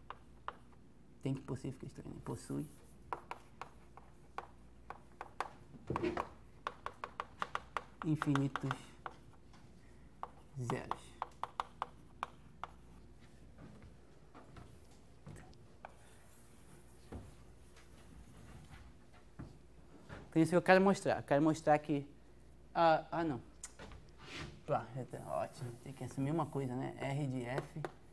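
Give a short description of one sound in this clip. Chalk taps and scratches on a board in quick bursts.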